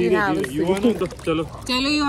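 A man talks softly to a baby.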